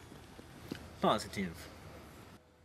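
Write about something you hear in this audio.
A young man speaks briefly up close.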